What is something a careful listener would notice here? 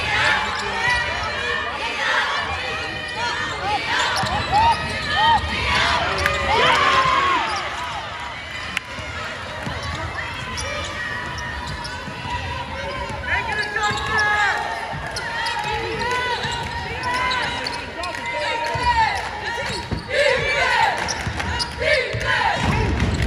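Young women players call out to each other across a large echoing gym.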